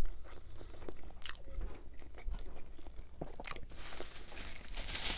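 Soft bread squishes and tears between fingers.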